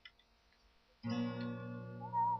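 An acoustic guitar is strummed, loud and close.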